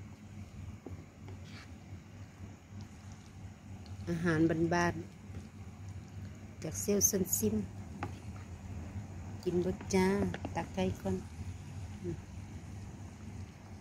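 A wooden spatula scrapes and stirs food in a pot.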